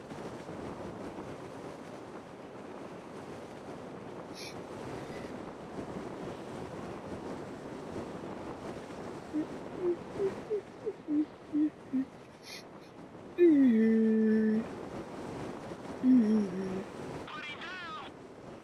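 Wind rushes loudly past during a freefall.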